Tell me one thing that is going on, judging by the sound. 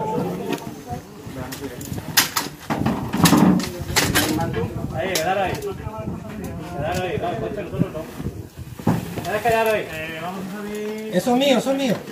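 A stretcher's wheels roll and rattle over pavement.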